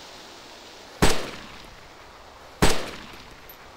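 A rifle fires single loud shots close by.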